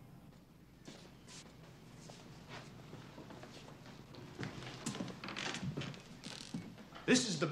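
Footsteps walk across a wooden floor indoors.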